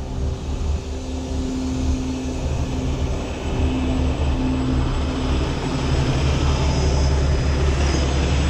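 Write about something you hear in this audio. A truck's diesel engine rumbles and drones loudly close by.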